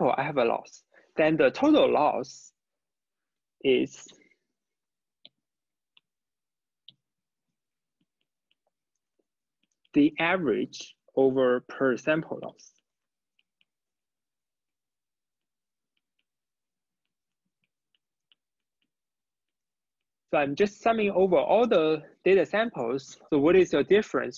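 A young man speaks calmly into a close microphone, pausing between phrases.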